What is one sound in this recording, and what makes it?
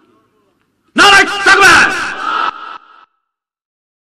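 A man preaches forcefully into a microphone through a loudspeaker.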